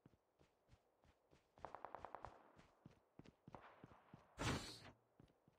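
Footsteps crunch quickly on a dirt path.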